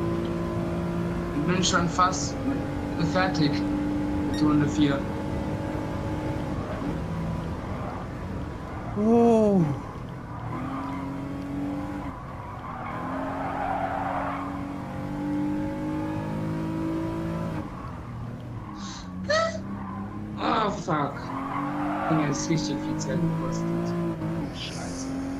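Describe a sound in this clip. A car engine drones and rises and falls in pitch as gears change.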